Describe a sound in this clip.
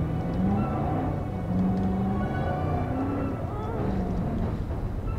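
A vehicle engine rumbles steadily as it drives along.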